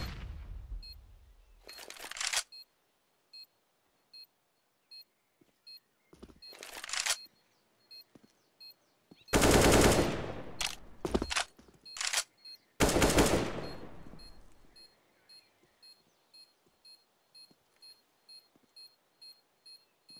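Footsteps tap at an even pace.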